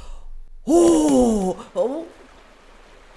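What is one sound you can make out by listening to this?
A young woman gasps and exclaims loudly into a close microphone.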